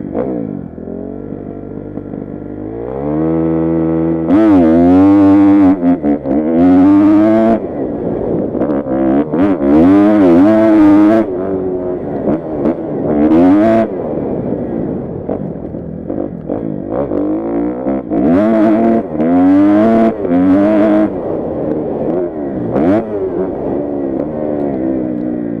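A dirt bike engine revs hard up and down, close by.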